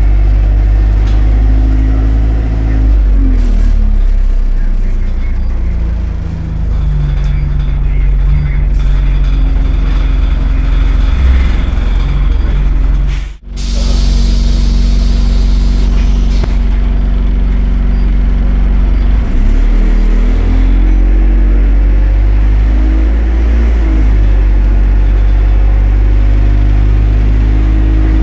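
A bus interior rattles and creaks over the road.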